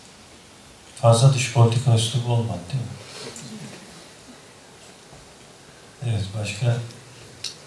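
A man speaks into a microphone with animation, in a room with some echo.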